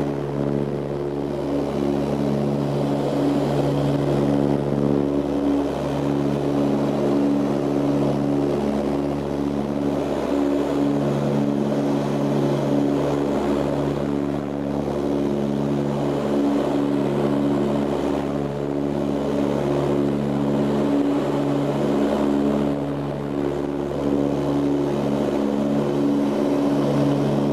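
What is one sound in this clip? A propeller engine drones loudly and steadily, with a low throbbing hum.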